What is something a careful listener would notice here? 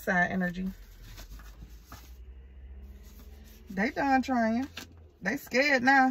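Paper cards rustle in a woman's hands.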